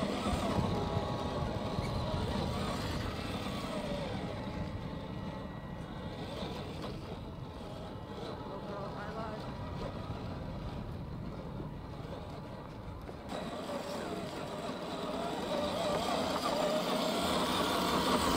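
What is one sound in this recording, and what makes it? A small electric motor whines as a toy truck crawls over rocks.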